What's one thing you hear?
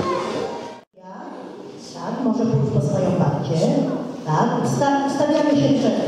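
A woman speaks into a microphone through a loudspeaker.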